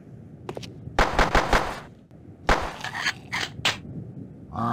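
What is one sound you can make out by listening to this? A pistol fires several quick, loud shots.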